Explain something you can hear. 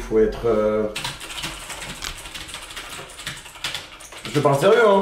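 Keyboard keys clatter rapidly.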